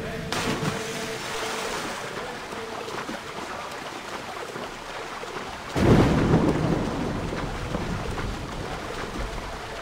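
A swimmer splashes through the water.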